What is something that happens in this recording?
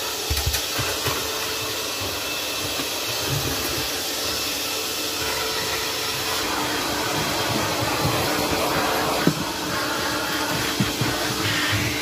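Debris rattles up a vacuum hose.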